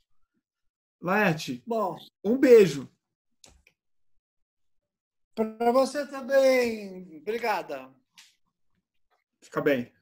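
A man speaks cheerfully over an online call.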